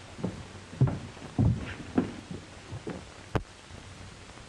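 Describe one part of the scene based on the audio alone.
A door opens and shuts.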